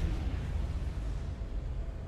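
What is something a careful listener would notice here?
Game spell effects crackle and boom in a battle.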